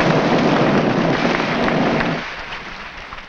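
Molten metal roars loudly as it pours from a furnace.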